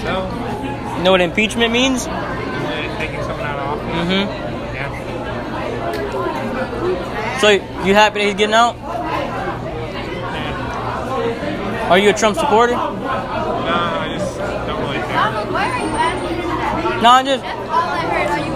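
A teenage boy speaks casually close by.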